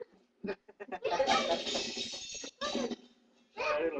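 A group of young people laugh and shout in a small room.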